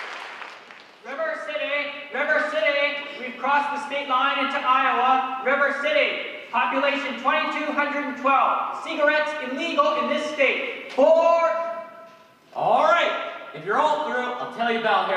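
A man speaks out loudly in a large echoing hall.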